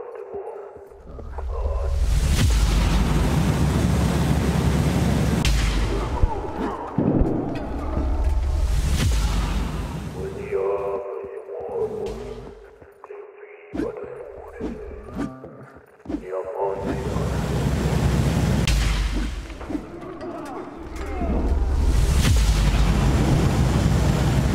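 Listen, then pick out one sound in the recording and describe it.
A deep, roaring rumble swells and fades several times.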